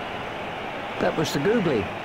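A cricket bat strikes a ball with a sharp knock.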